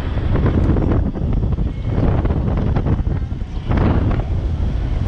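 Tyres crunch and rattle over sand.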